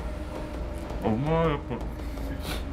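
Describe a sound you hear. A man makes a short pleased sound up close.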